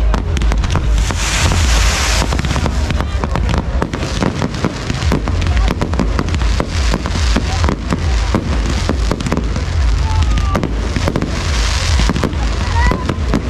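Fireworks hiss and fizz as they shoot up.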